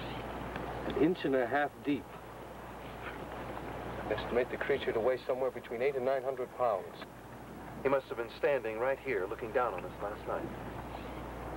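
A man speaks calmly outdoors, close by.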